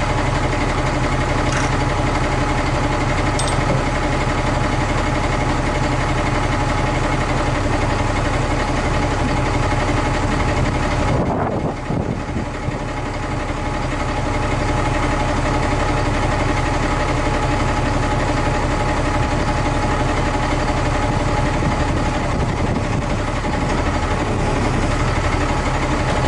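A truck engine runs with a steady low drone.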